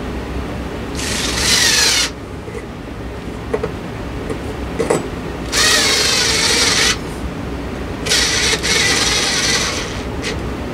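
Metal parts scrape and squeak as a light fitting is twisted close by.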